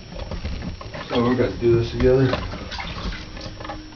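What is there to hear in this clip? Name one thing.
Water splashes gently in a tub.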